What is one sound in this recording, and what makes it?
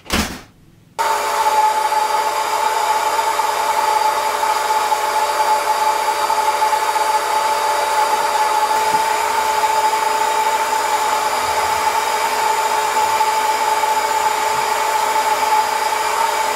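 A carpet cleaner machine whirs loudly and steadily.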